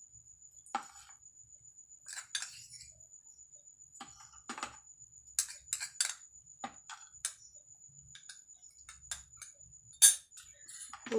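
A spoon clinks and scrapes against a small glass.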